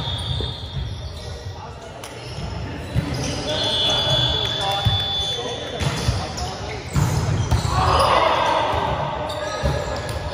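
Volleyballs thump off hands and arms in a large echoing hall.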